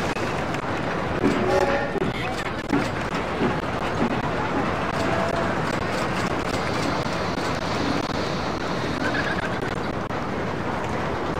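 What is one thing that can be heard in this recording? A roller coaster train rattles and clatters along its track.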